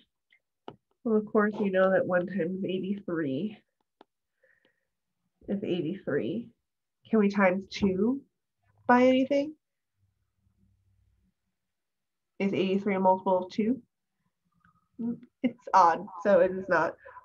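A young woman speaks calmly and clearly through a microphone.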